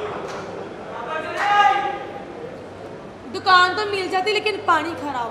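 A woman speaks loudly and with animation through a microphone.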